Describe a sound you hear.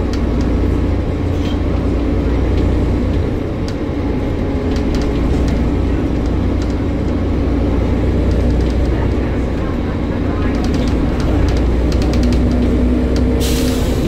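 Loose panels on a bus rattle and click over the road.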